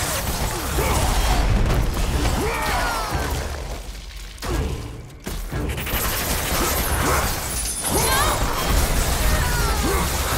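Creatures shriek and screech as they are struck.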